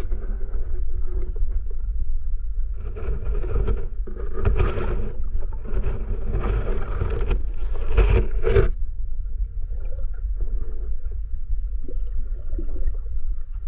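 Water rumbles steadily and dully underwater.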